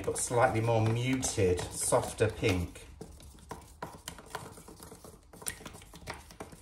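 A wooden stick stirs thick paint in a plastic tub with soft scraping and clicking.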